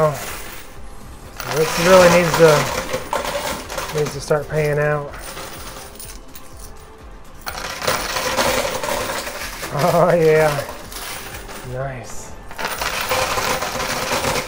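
Coins clink and clatter as a machine's tray slides back and forth.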